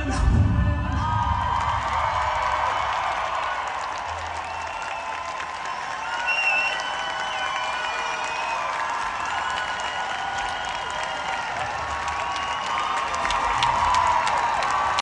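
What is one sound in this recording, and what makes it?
A band plays loudly through big speakers in a large echoing hall.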